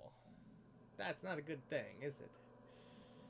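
A man talks quietly and close by.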